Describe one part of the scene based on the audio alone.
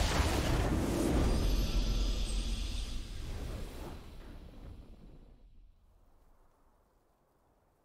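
A triumphant game fanfare plays and slowly fades away.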